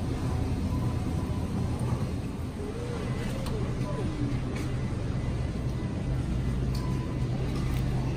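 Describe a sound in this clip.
A shopping cart rolls and rattles softly.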